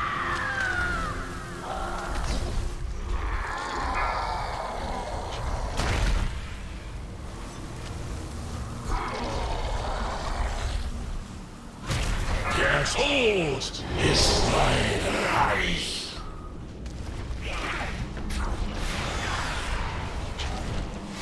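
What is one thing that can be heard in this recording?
Magic spells whoosh, crackle and burst in a busy fight.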